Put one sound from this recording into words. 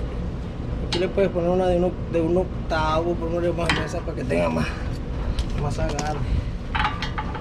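A middle-aged man talks calmly nearby.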